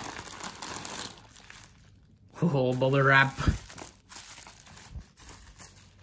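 Bubble wrap crinkles softly as hands handle it.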